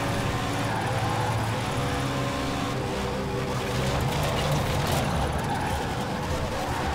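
A race car engine roars and revs.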